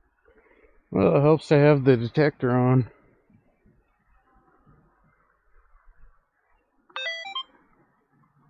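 A metal detector sounds a loud warbling tone, then a short beep.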